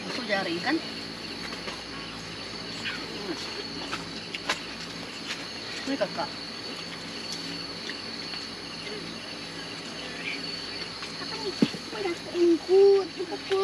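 A young adult talks softly close by, now and then.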